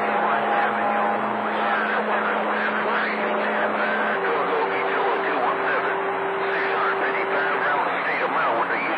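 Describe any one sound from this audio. Warbling, chirping tones squeal through the radio static.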